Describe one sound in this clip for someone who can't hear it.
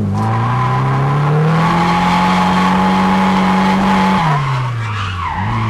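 A car engine roars loudly from inside the car, rising in pitch, holding steady, then dropping and revving up again.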